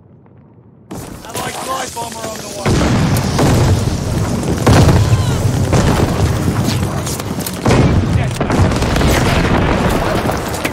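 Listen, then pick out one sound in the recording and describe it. A young man talks excitedly into a microphone, close up.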